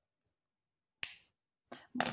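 A binder clip clicks as it is pulled off.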